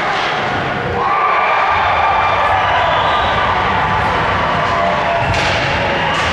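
A small crowd cheers in a large echoing rink.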